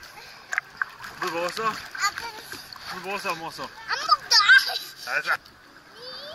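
A young child laughs and chatters close by.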